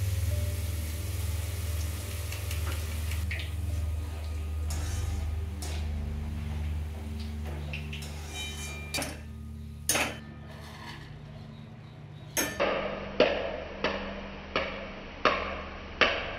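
Hot oil sizzles and crackles as batter drips into it.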